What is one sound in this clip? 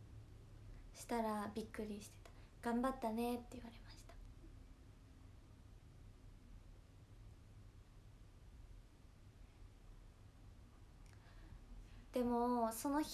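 A young woman speaks calmly and close to a microphone, in short bursts with pauses.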